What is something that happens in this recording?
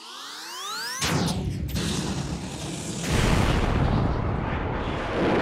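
A rocket engine roars with a loud rushing blast.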